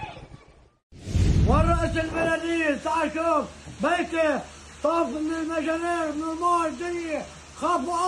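An elderly man speaks loudly and with emotion, close by.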